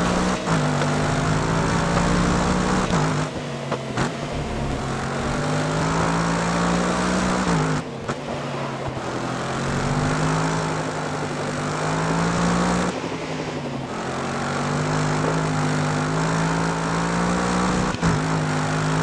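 A racing car engine roars loudly, rising in pitch as it speeds up and dropping sharply at each gear change.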